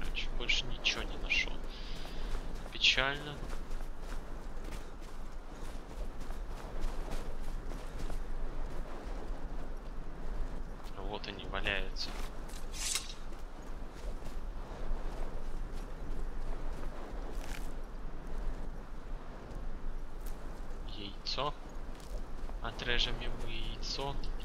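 Footsteps crunch softly on sand.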